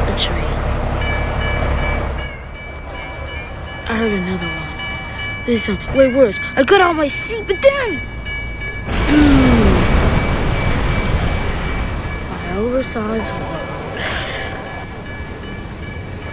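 A train horn blares steadily.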